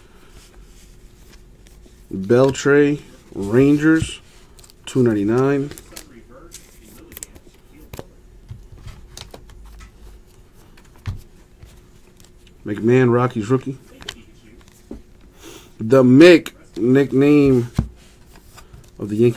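Trading cards slide and flick against each other in hands.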